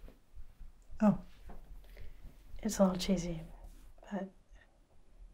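A second young woman answers quietly and close by.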